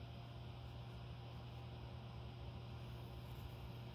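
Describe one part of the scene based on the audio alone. A pencil scratches lightly on paper.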